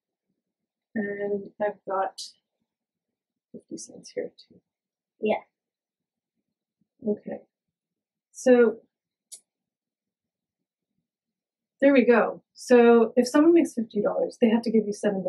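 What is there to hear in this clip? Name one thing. A woman speaks calmly and clearly close to a microphone.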